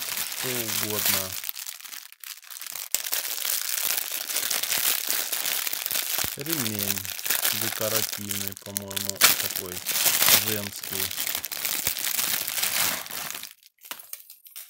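Plastic wrapping crinkles and rustles loudly as it is handled and torn open.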